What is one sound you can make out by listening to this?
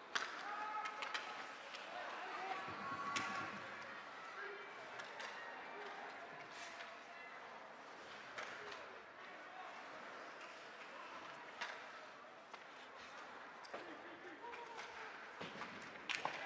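A crowd murmurs and calls out in a large echoing rink.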